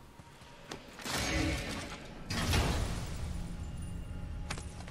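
A magical burst whooshes and hisses.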